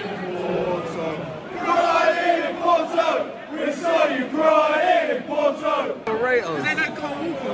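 A large stadium crowd sings loudly in unison nearby, outdoors.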